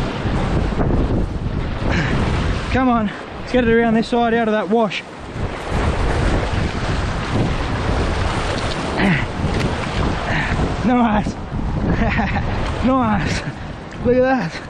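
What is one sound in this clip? Waves surge and splash against rocks close by.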